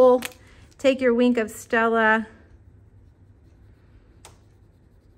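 A felt-tip marker rubs softly on card.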